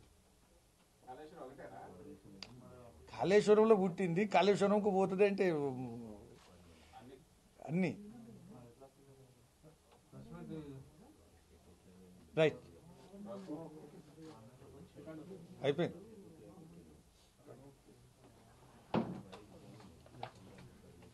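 A middle-aged man speaks with animation into microphones.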